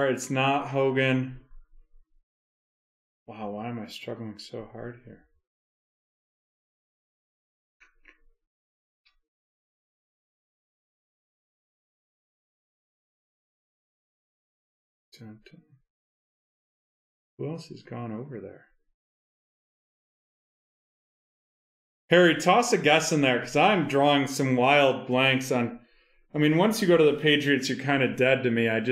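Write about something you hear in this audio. A man talks into a microphone in short bursts, then at length with animation.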